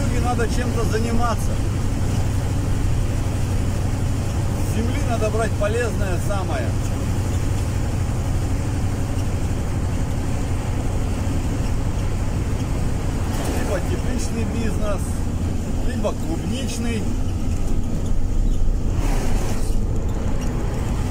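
A vehicle engine hums steadily from inside a moving cab.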